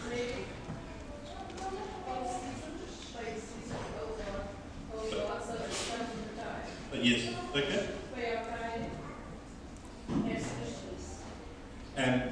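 A man preaches to a congregation through a microphone in a large echoing hall.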